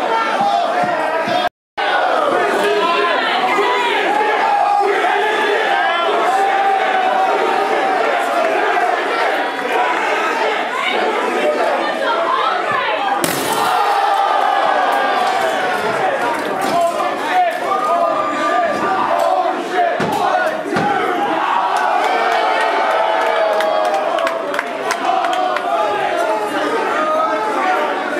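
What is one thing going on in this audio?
A large indoor crowd cheers and shouts loudly.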